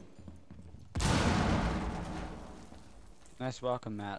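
A loud blast booms and slowly rumbles away.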